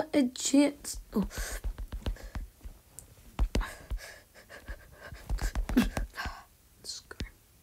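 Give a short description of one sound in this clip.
Sharp hits from a game fight sound in quick succession.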